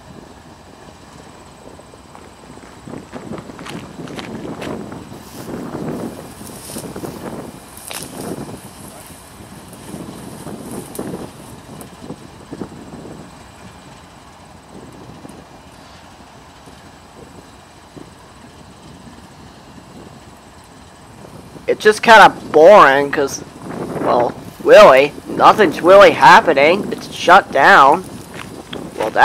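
A diesel locomotive engine rumbles steadily nearby.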